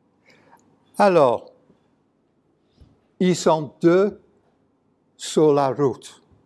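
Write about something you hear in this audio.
A middle-aged man speaks calmly into a microphone in an echoing hall, pausing between phrases.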